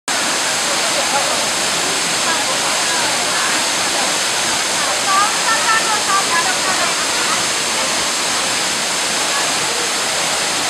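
A crowd of young men and women chatter and call out outdoors.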